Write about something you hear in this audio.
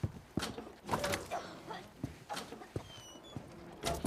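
A wooden barn door creaks open.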